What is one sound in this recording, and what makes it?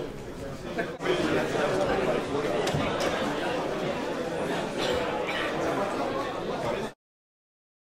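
Many people murmur and move about in a large room.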